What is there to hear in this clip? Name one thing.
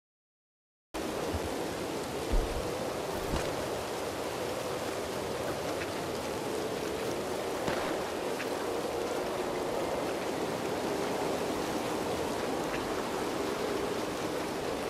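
Footsteps rustle through grass at a steady pace.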